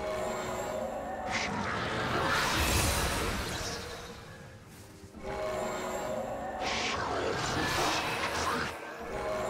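Magic spell effects whoosh, crackle and thud in a video game.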